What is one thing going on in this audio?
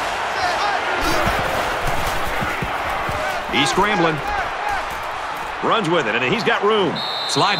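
Football players collide with dull thuds.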